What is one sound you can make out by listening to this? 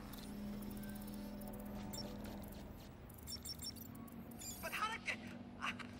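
An electronic device chirps and beeps in short bursts.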